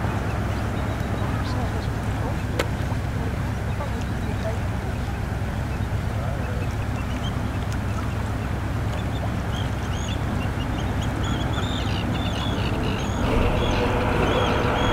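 Wind buffets loudly and steadily outdoors.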